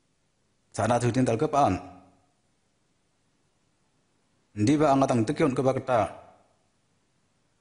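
A man speaks in two short phrases, close by.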